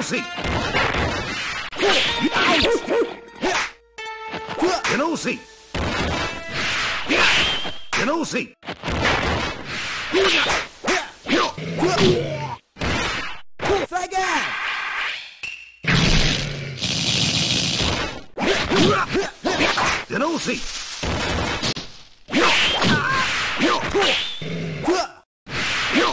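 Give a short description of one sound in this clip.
Swords slash and clang with sharp metallic hits.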